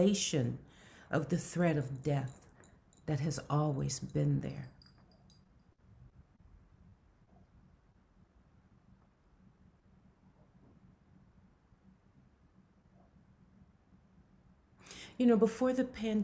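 A middle-aged woman speaks calmly over an online call, pausing between phrases.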